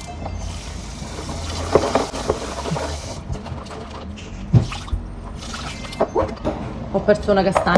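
A metal bowl clanks in a sink.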